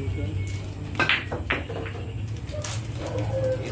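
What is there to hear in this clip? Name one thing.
Billiard balls clack together.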